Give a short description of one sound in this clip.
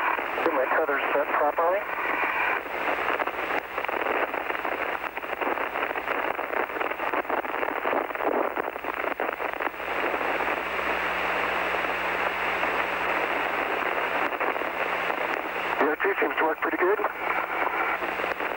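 A man speaks calmly over a crackling radio link.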